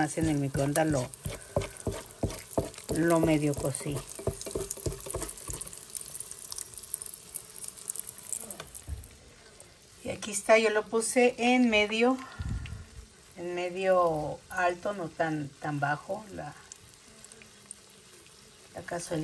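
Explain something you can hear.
Hot oil sizzles and crackles around frying food.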